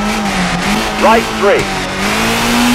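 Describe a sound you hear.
Tyres skid and squeal on the road.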